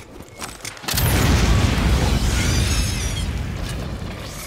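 A flamethrower roars in a loud burst of fire.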